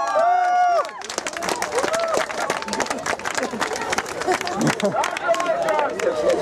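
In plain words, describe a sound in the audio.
A crowd claps hands in quick rhythm.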